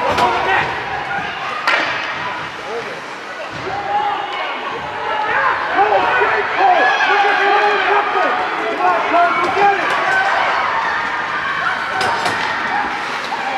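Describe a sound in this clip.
Young players shout and call out across an echoing rink.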